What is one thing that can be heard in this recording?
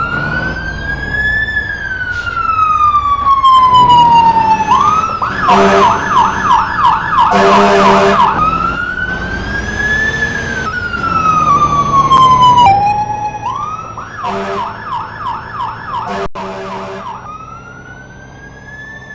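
A fire truck siren wails up and down, switching now and then to a fast yelp.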